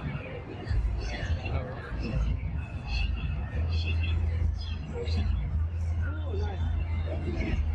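Passers-by murmur and chatter on a busy pedestrian street outdoors.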